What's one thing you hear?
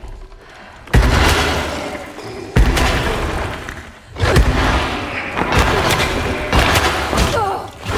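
A creature snarls and screeches loudly close by.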